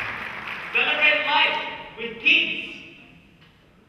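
A young woman sings loudly.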